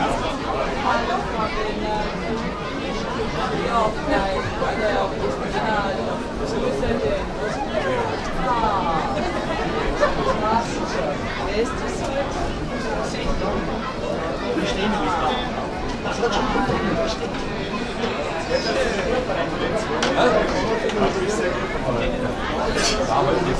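A guitar is strummed along with the singing.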